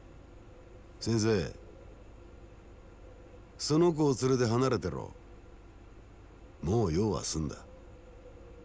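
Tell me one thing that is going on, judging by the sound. A middle-aged man speaks calmly in short, low phrases.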